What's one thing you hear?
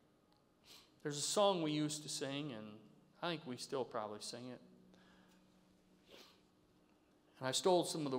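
A middle-aged man speaks slowly and earnestly through a microphone.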